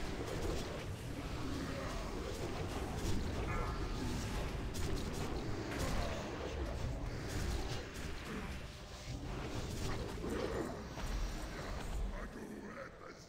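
Battle noise and spell effects rumble and crackle in a fight.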